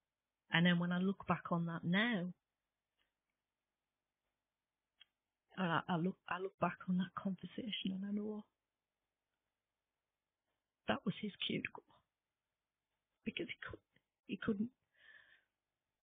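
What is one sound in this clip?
A woman speaks calmly and closely into a microphone, in short bursts with pauses.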